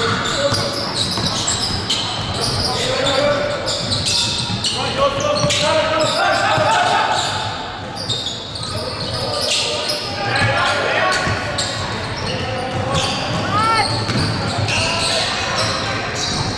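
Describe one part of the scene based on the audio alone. A basketball bounces with echoing thumps.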